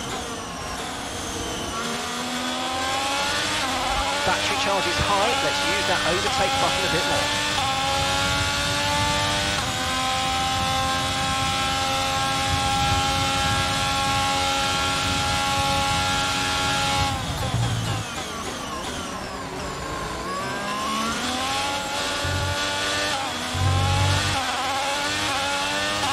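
A racing car engine roars, climbing in pitch through quick gear shifts, holding a high steady whine, then dropping sharply under braking.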